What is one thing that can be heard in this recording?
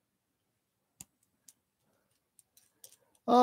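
Small plastic toy parts click softly together.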